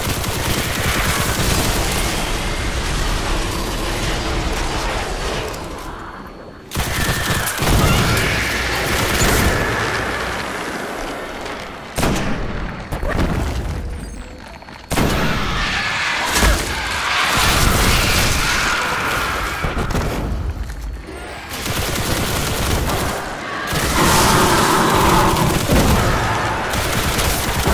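An electric weapon crackles and buzzes.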